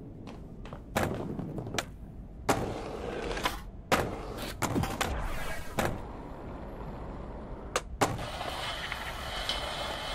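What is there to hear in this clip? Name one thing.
A skateboard grinds along a rail with sharp clacks.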